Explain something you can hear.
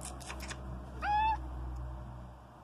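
A cat meows briefly close by.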